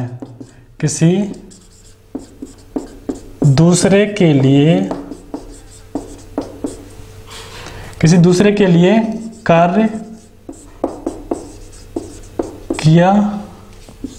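A young man speaks calmly and clearly, close by.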